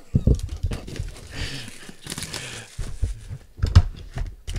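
Plastic wrap crinkles and rustles as hands tear it off a box.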